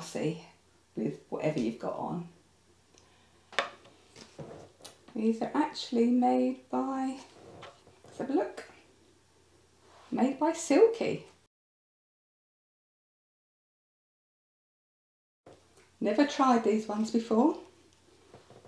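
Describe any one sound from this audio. An older woman talks calmly and close by.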